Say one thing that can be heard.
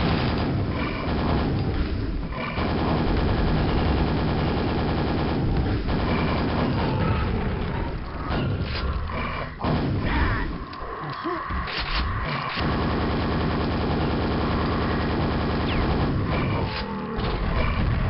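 A double-barrelled shotgun fires blasts in a video game.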